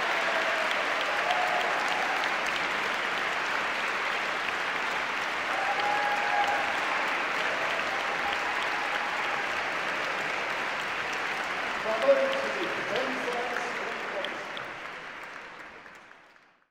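An audience applauds loudly in a large echoing hall, then the clapping fades away.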